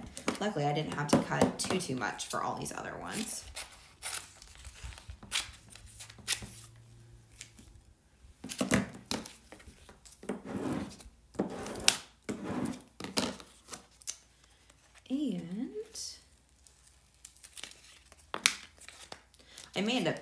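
Plastic sheets crinkle and rustle in hands.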